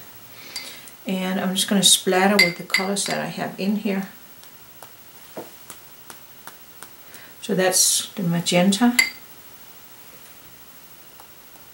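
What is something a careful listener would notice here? A paintbrush swirls and taps in a pot of watery paint.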